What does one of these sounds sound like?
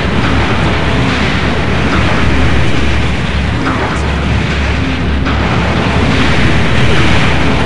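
Explosions boom and crackle over and over.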